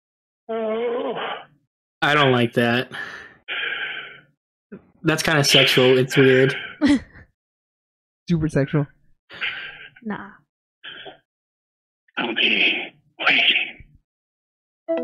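Men and women talk with animation over microphones and an online call.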